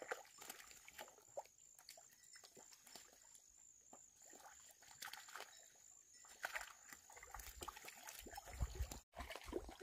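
A net swishes and scoops through shallow muddy water.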